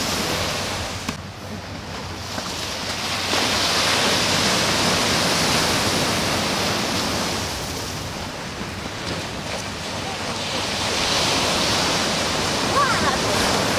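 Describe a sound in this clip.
Waves crash and churn with a steady rushing roar.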